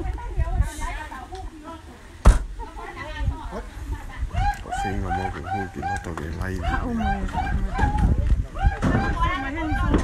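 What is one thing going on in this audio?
A crowd of men and women talk and call out loudly nearby.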